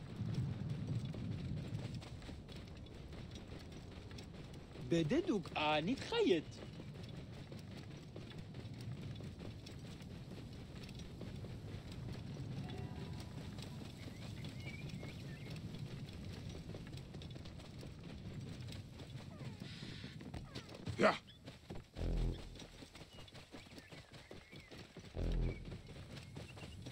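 A camel's hooves thud softly on sand at a steady trot.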